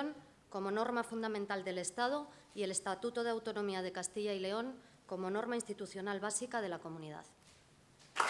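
A woman speaks calmly into a microphone, as if reading out.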